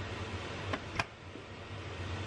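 A rice cooker lid snaps shut with a click.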